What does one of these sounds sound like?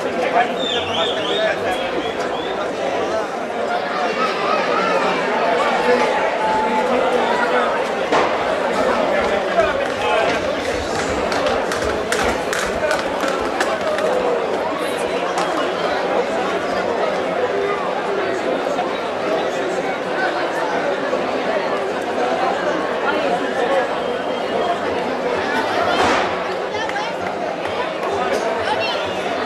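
A crowd of men and women chatters and shouts outdoors throughout.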